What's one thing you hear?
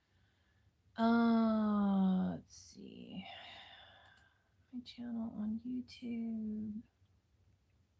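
A middle-aged woman speaks calmly and close to a microphone.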